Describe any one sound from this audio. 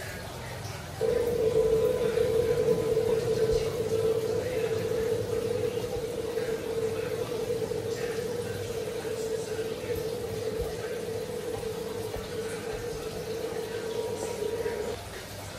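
A low, steady drone of game music plays from a tablet speaker.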